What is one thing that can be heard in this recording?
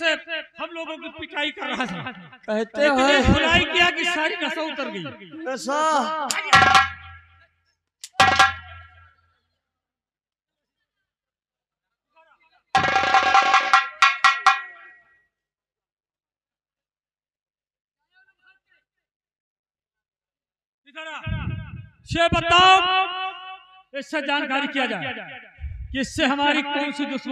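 A man speaks loudly and dramatically through a microphone.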